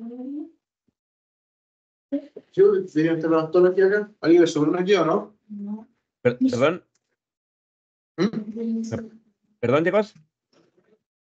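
A man speaks calmly over an online call, with pauses.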